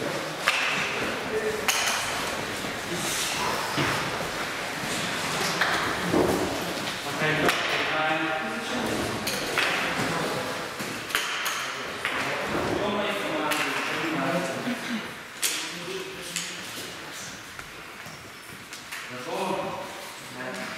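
A young man speaks calmly nearby in an echoing hall.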